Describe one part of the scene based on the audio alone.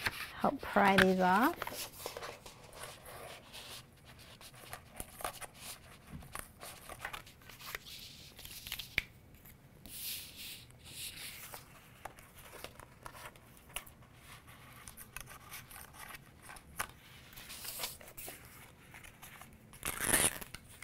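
A craft knife scrapes as it cuts through paper.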